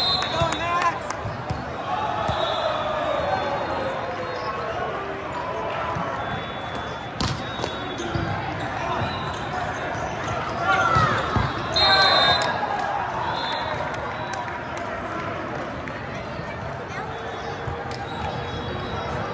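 A crowd of voices chatters and echoes through a large hall.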